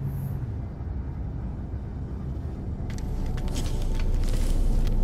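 A low electric hum drones steadily.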